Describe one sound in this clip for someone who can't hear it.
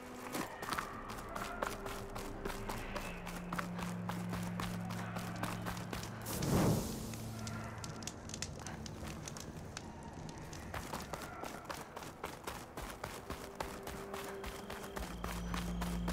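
Footsteps crunch steadily over rock and gravel.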